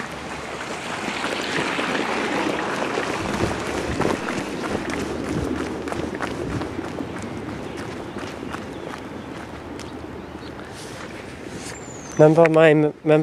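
Wind gusts roughly against the microphone outdoors.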